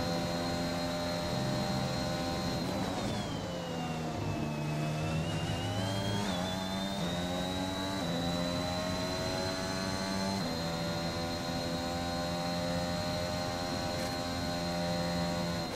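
A Formula One car engine screams at high revs.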